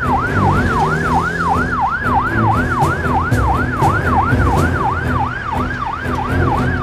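A police siren wails rapidly up and down close by.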